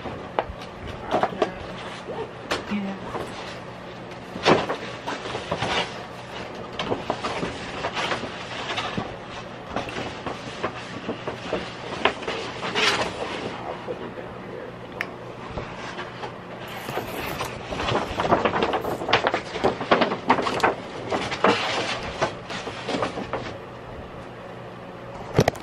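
Large sheets of paper rustle and crinkle.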